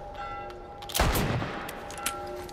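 A rifle fires a single loud shot that rings out.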